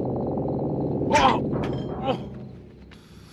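A young man cries out in a loud, anguished shout.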